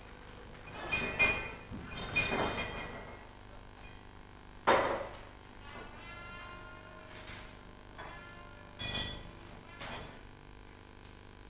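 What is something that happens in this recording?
A man moves things about, with clattering knocks.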